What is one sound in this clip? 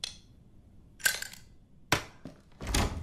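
A lock snaps open with a metallic clunk.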